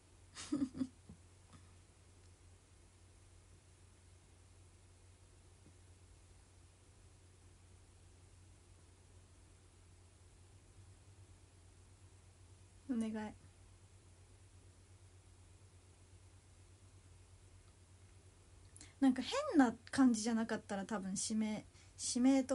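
A young woman speaks softly and close to a microphone, in short bursts with long pauses.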